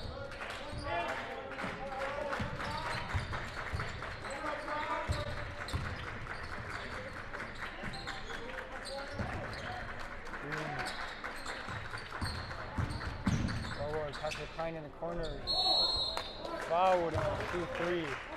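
A basketball bounces on a hard court in a large echoing gym.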